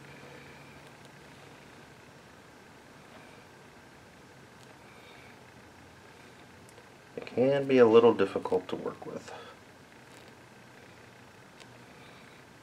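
Small metal parts click softly as they are handled with pliers.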